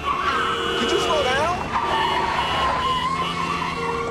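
A car drives past on a street.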